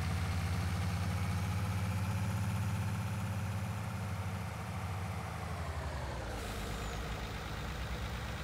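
A heavy truck engine rumbles steadily as the truck drives along.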